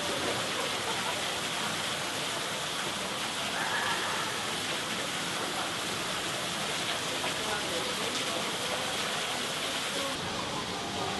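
Water trickles and splashes steadily over rocks.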